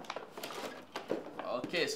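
Plastic packaging crinkles in a man's hands.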